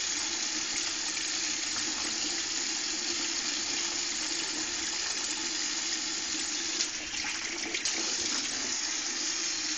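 An electric trimmer buzzes steadily close by.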